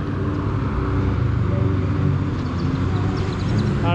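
A car drives past on a road outdoors.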